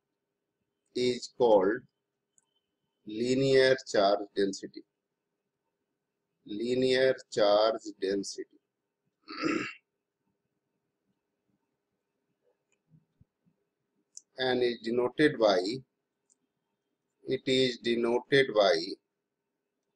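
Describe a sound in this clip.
A middle-aged man speaks calmly and clearly into a microphone, in short phrases with pauses.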